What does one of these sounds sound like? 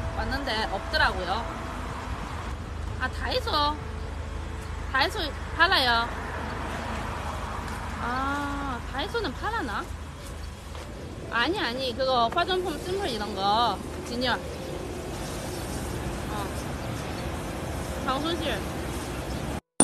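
A young woman talks on a phone close by, in a lively voice.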